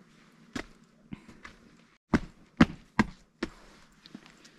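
Footsteps crunch on a path outdoors.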